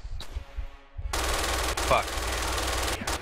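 A machine gun fires a rapid burst.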